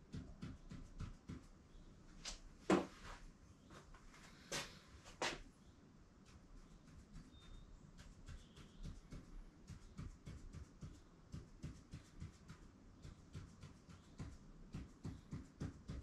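A marker pen taps and scratches on a board in quick strokes.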